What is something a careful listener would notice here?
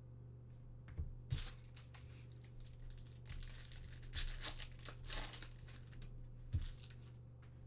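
A foil card pack crinkles and tears.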